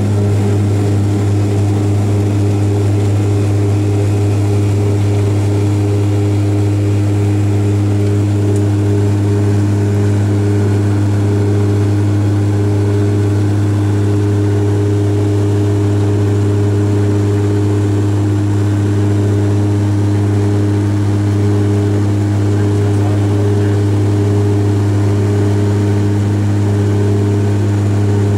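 Jet engines roar steadily as an airliner takes off and climbs, heard from inside the cabin.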